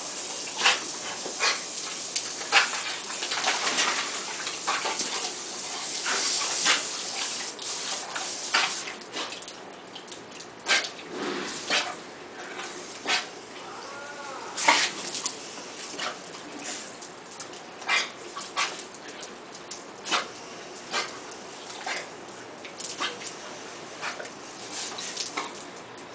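A dog laps and snaps at a spray of water.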